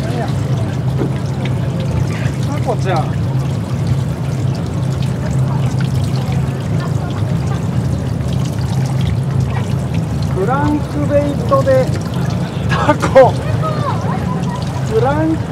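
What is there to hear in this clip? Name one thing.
A fishing reel clicks as it is wound.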